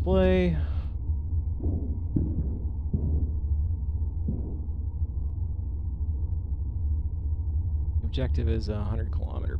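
A spacecraft's engines hum with a low, steady drone.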